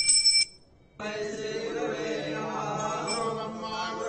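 Men chant a prayer together nearby.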